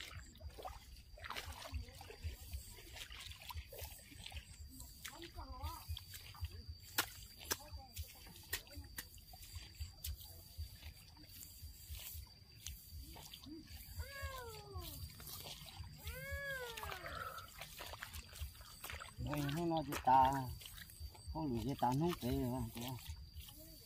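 Rice seedlings squelch softly as they are pushed into wet mud.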